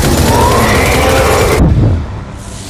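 Twin heavy guns fire in a rapid, roaring burst.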